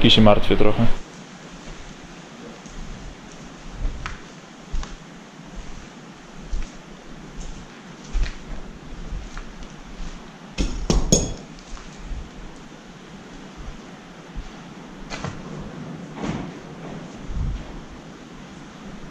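Footsteps creak and knock on wooden floorboards.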